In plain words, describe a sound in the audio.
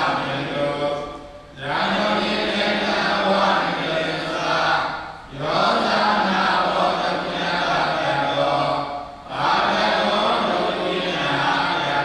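A group of boys chant together in a steady, droning rhythm, pausing briefly between phrases.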